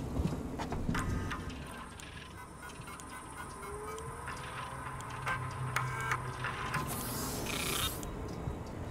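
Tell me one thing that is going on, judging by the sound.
A computer terminal chirps with short electronic tones.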